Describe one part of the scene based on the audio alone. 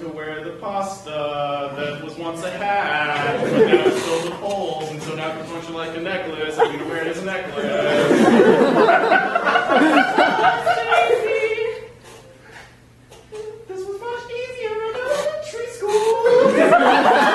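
A young woman speaks with animation in a large hall.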